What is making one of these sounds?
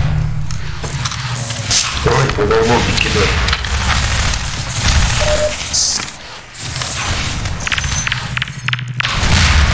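Energy blasts crackle and zap.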